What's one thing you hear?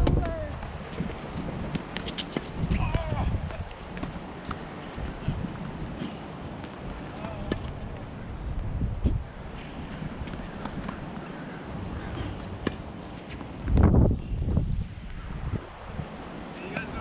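Tennis balls are struck by rackets with sharp pops.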